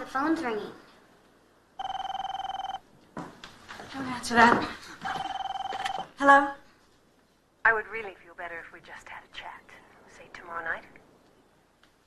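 A woman speaks urgently and close by.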